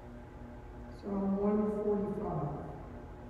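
An elderly woman sings into a microphone.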